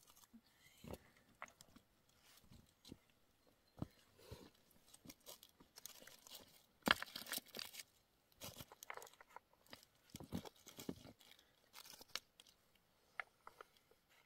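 Footsteps crunch and clatter on loose stones.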